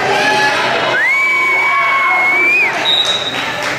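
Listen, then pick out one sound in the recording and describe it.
A referee blows a whistle in one long blast.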